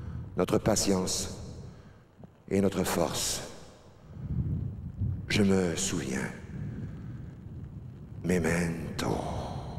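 A middle-aged man speaks into a microphone in short, emphatic phrases.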